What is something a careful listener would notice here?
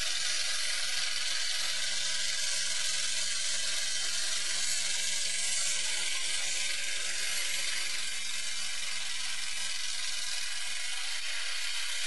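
A car engine roars loudly nearby.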